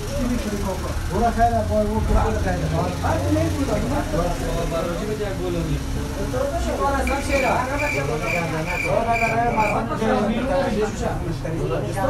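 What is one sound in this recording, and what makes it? Several men talk over one another nearby.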